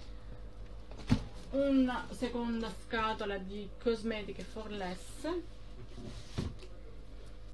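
A cardboard box thumps and rustles as it is handled.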